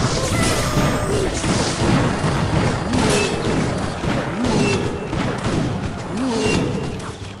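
Small troops clash and fire in a battle game, with quick hits and zaps.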